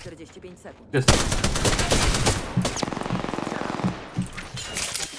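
A rapid-fire gun shoots in quick bursts.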